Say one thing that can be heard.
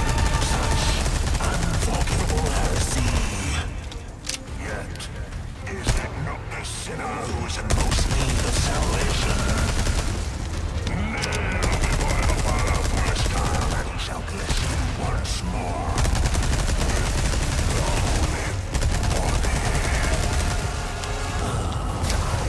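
A huge monster roars and shrieks.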